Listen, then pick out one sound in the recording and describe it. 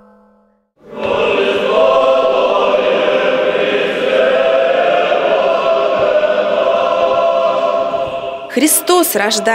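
A choir sings in a large echoing hall.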